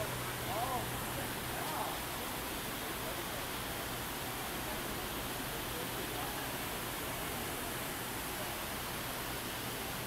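Fountain jets splash and hiss steadily into a pool.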